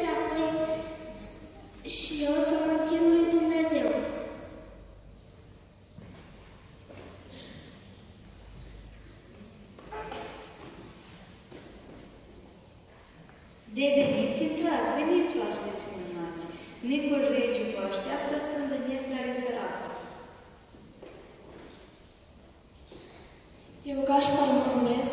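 A group of men and women chant together in a large echoing hall.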